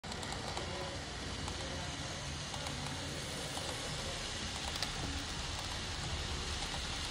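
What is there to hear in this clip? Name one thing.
A model train rumbles and clicks steadily along its track close by.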